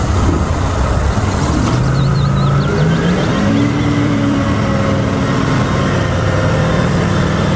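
A heavy diesel engine rumbles and roars steadily close by.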